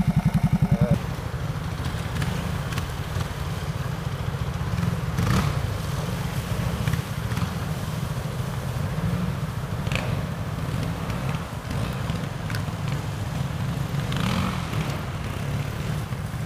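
A motorcycle engine revs and growls as the bike climbs over rocks.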